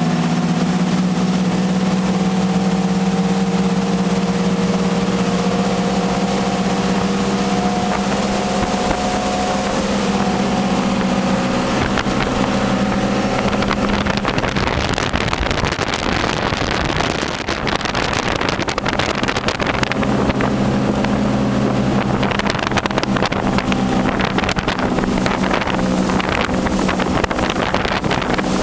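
Wind buffets loudly past the boat.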